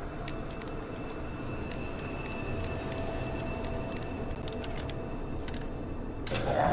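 A combination lock's dials click as they turn.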